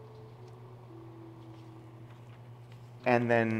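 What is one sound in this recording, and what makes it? Paper rustles as a hand slides it aside.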